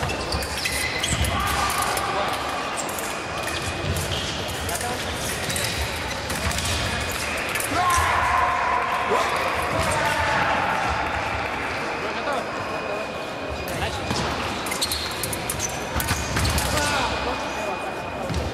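Footsteps shuffle and squeak on a hall floor.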